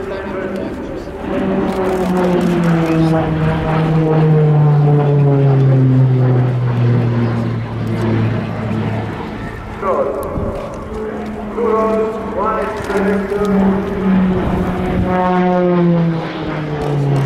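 A propeller plane's engine drones overhead, its pitch sliding up and down as it passes.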